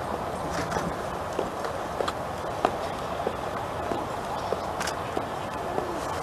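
A soldier's boots tap on the paving as he marches.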